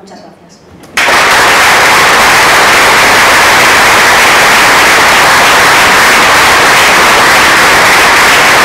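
A crowd applauds loudly.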